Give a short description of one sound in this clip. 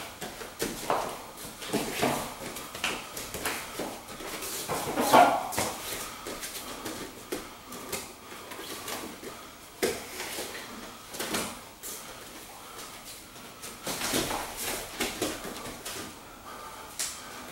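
Bare feet thump and squeak on a padded mat in an echoing room.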